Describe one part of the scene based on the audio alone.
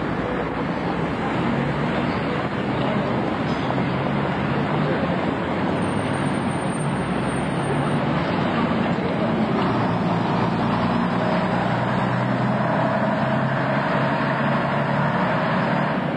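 Traffic hums along a busy street.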